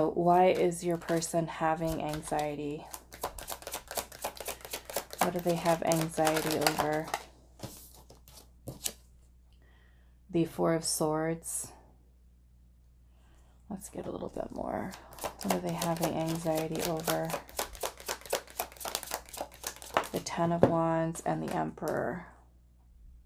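Playing cards are shuffled with quick, crisp flicks.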